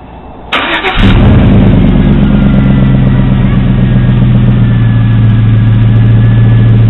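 A truck engine idles with a deep, steady exhaust rumble close by.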